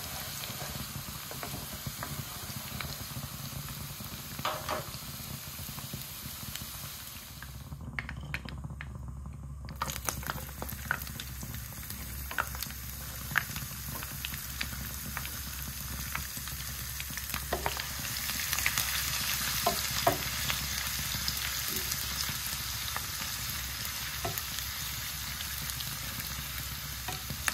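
Oil sizzles and bubbles steadily in a pan.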